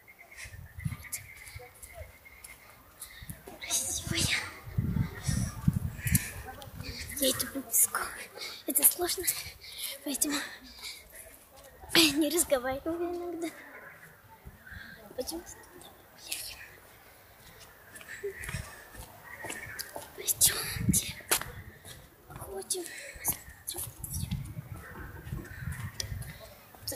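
A young girl talks close to the microphone.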